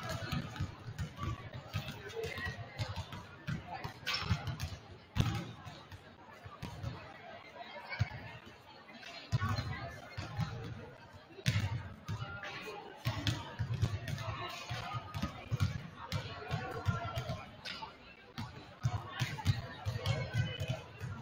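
A small crowd chatters in the stands.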